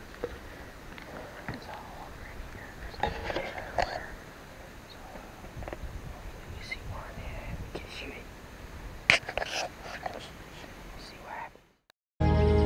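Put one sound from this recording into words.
A young man talks quietly close by.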